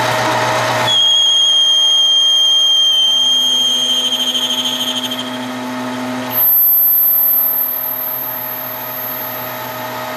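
A lathe runs with a steady hum and a high metallic whine.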